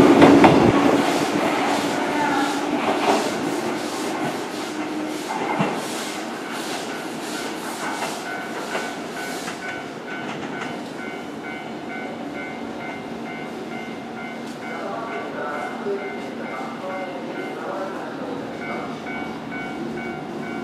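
A second train approaches slowly, its wheels clattering on the rails.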